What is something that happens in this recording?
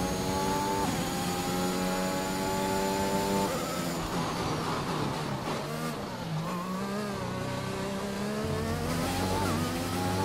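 A racing car engine screams at high revs, dropping in pitch as the gears shift down and rising again as it speeds up.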